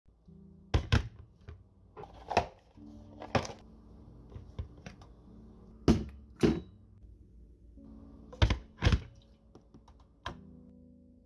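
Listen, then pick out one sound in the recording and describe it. A metal kettle knocks and clatters as it is lifted and set back on its base.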